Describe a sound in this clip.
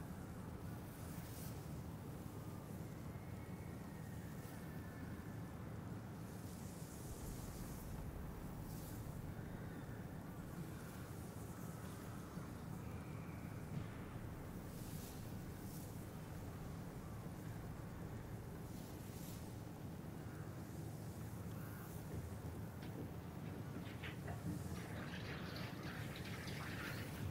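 Wind blows with a steady low rumble outdoors.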